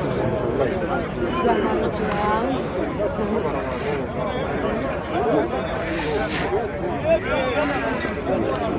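A large outdoor crowd chatters and murmurs steadily in the distance.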